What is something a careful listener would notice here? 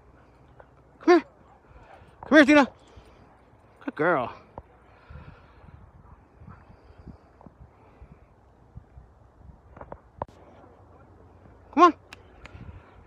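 A dog barks several times nearby.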